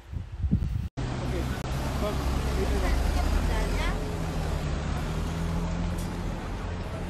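Traffic rumbles along a busy street outdoors.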